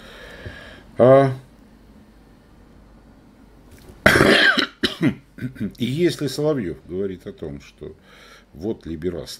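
An elderly man speaks with animation, heard close through a microphone.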